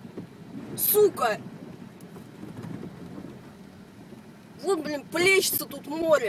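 A car engine hums low from inside the car.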